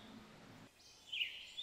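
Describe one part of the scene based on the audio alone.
A bird sings a short burst of hoarse notes.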